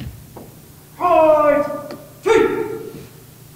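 A man shouts commands loudly in a large echoing hall.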